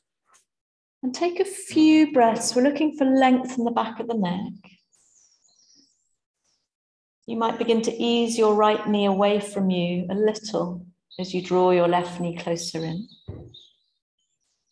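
A woman speaks calmly, giving instructions.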